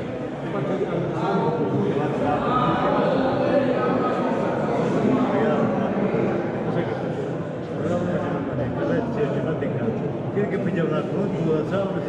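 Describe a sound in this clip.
A crowd of men and women chatter and murmur in a large echoing hall.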